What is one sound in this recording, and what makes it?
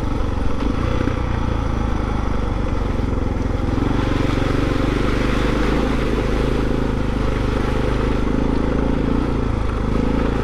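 A motorbike engine drones steadily up close.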